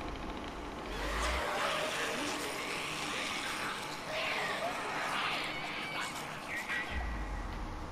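A horde of creatures shrieks and snarls nearby.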